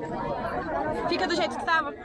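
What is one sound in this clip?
A young woman talks close by.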